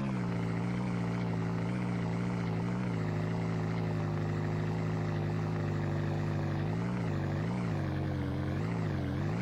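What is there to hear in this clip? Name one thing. A small engine drones steadily, its pitch wavering as it climbs.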